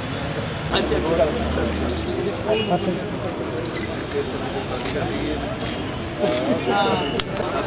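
A group of children and adults chatter and murmur nearby.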